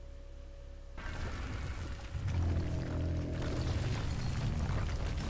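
A heavy crash booms and rumbles as a creature slams into the ground.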